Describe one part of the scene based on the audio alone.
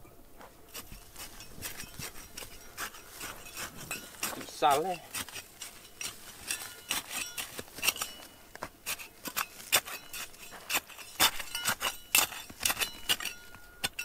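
A small metal trowel scrapes and digs into dry, stony soil.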